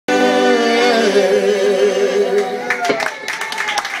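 A man sings through loudspeakers, holding long notes.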